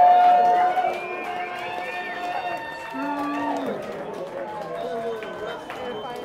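An electric guitar plays a bending, wailing lead line.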